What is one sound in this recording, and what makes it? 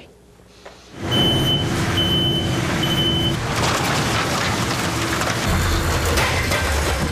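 A pallet jack rumbles as it hauls a loaded pallet.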